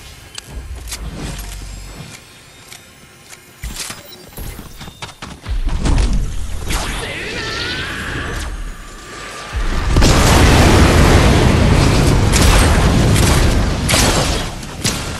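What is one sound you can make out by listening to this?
Shotgun blasts boom out one after another.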